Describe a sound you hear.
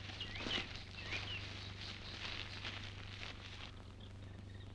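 A cloth bag rustles as it is handled.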